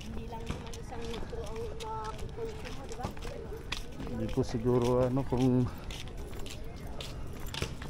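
People walk past on pavement with soft footsteps.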